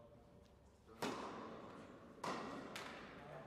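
A tennis racket strikes a ball with a sharp pop, echoing in a large hall.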